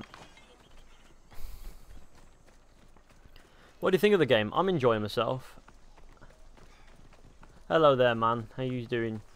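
Footsteps run on a dirt path.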